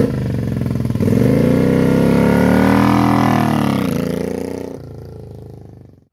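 A motorcycle engine revs up and roars as the bike pulls away, then fades into the distance.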